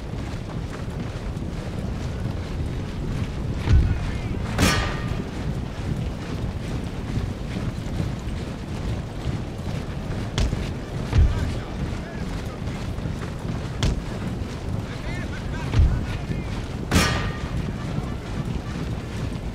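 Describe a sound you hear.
Many soldiers march in step across snowy ground.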